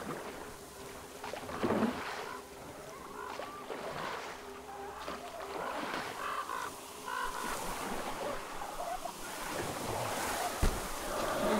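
Water laps and splashes against a small wooden boat as it glides along.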